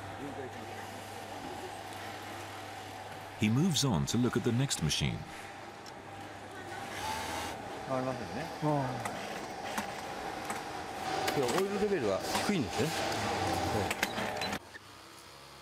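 A sewing machine hums steadily.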